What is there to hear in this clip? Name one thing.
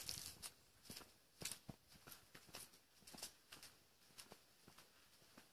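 High heels click on pavement at a steady walking pace.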